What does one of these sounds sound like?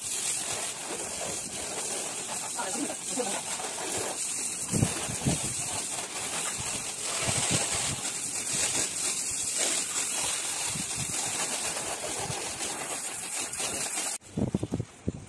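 Water sprays hard from a hose onto a motorcycle.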